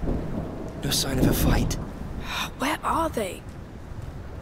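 A young boy speaks in a hushed voice.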